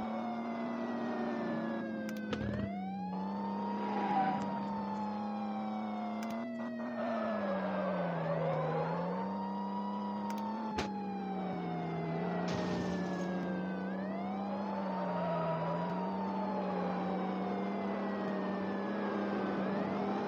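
A car engine hums steadily, its pitch shifting with speed.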